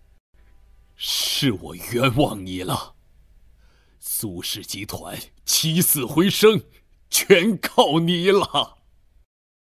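An elderly man speaks emotionally, close by.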